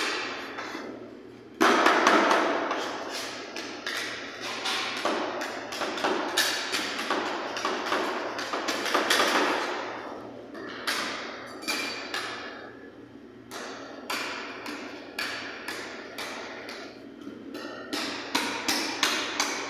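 Metal spatulas scrape and tap rapidly on a cold metal plate.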